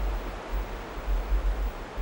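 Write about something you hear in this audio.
Water ripples gently around a swimming animal.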